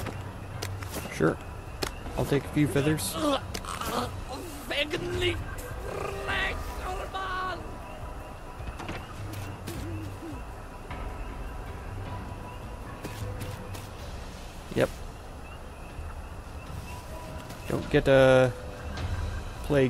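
Footsteps rustle through tall grass and leaves.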